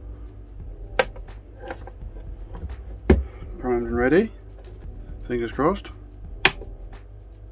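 A plastic case knocks and clicks as hands handle it.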